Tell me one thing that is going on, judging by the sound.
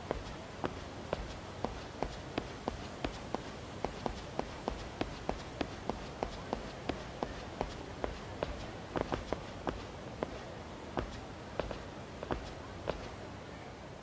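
Footsteps tap quickly and evenly on paving stones.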